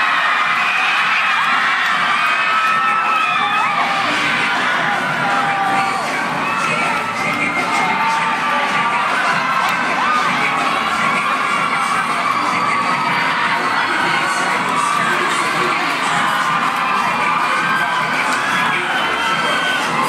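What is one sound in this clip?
A large audience cheers and shouts loudly in an echoing hall.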